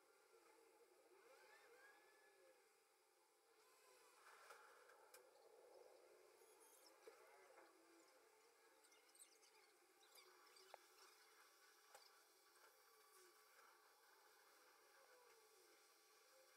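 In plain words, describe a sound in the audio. A brush scrapes softly against a flexible plastic mould.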